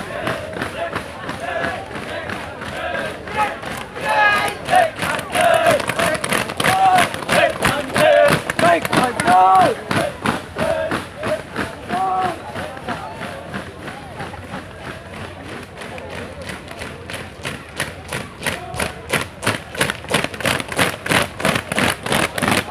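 Boots stamp on pavement in a steady marching rhythm.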